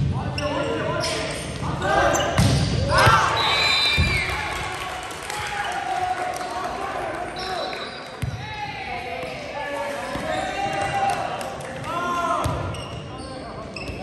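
A crowd of spectators cheers and shouts.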